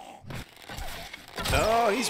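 A wooden club thuds against a body.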